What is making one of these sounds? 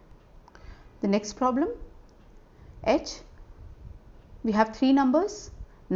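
A woman speaks calmly into a microphone, explaining in short phrases.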